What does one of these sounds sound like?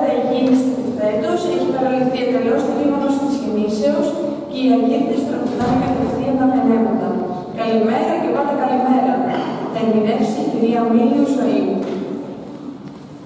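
A large mixed choir sings in a resonant, echoing hall.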